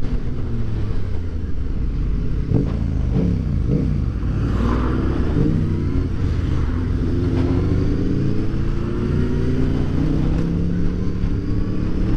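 Wind rushes past a moving motorcycle.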